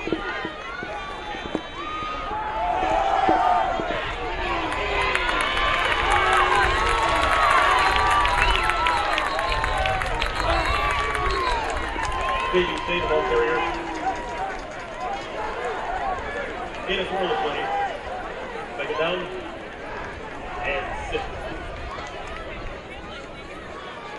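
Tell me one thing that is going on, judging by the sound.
A large crowd cheers and shouts outdoors, swelling and then easing off.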